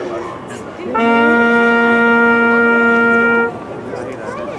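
A wind instrument holds a single long, steady note.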